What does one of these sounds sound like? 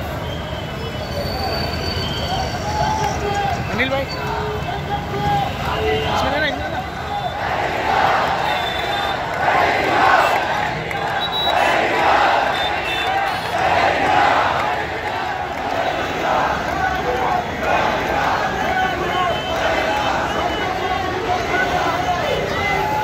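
A large crowd chants and shouts together outdoors.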